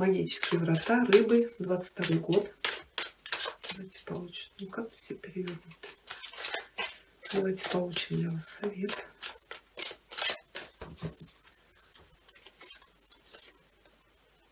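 Playing cards riffle and slap as they are shuffled by hand.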